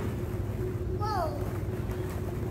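A toddler squeals.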